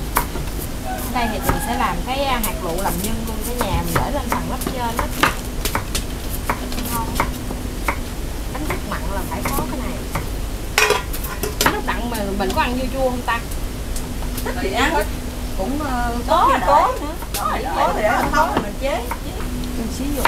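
A middle-aged woman talks nearby in a relaxed way.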